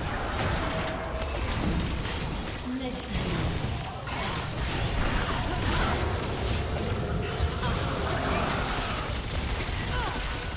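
Video game spell effects whoosh and crackle in a fast battle.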